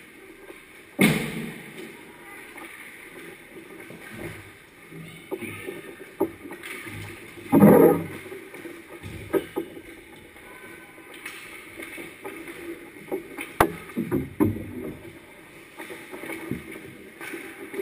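Hockey sticks clack against pucks and the ice.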